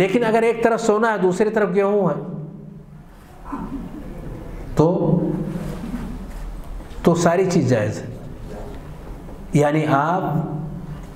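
A middle-aged man speaks with feeling through a microphone.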